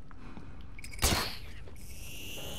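A grappling line fires with a sharp whoosh.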